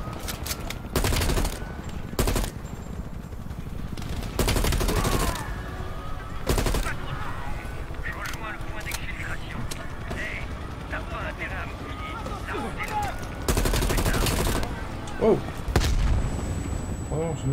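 Rifle shots boom loudly, one burst after another.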